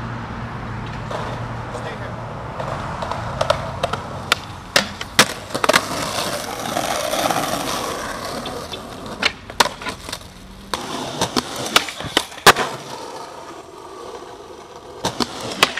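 Skateboard wheels roll and rumble on pavement.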